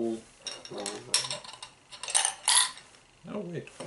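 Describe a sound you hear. Plastic balls clink and rattle in plastic tubes.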